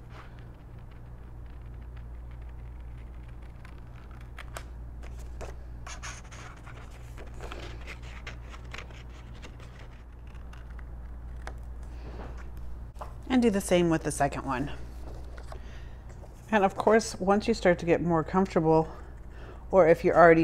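Scissors snip through card with soft crisp clicks.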